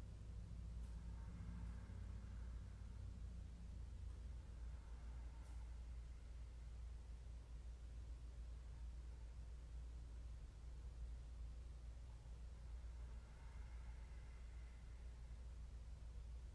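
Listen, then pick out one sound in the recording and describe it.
A woman speaks softly and calmly nearby.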